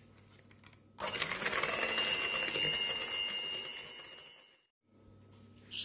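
An electric hand mixer whirs loudly.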